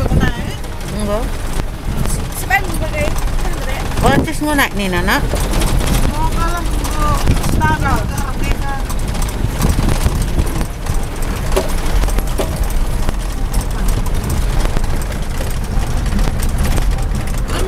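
A vehicle engine rumbles low while driving.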